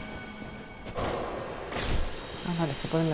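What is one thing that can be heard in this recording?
A sword swishes through the air and strikes.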